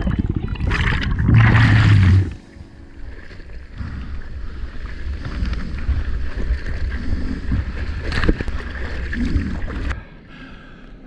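Sea water splashes and churns loudly close by.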